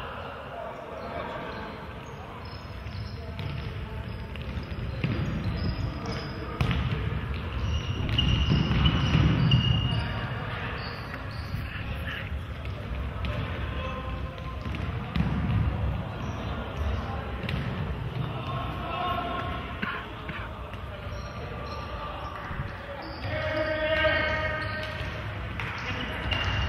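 A crowd of spectators murmurs and cheers in an echoing hall.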